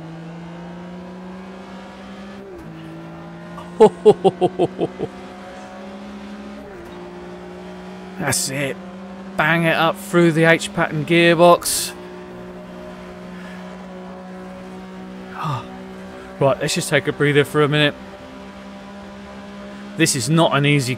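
A race car engine hums steadily.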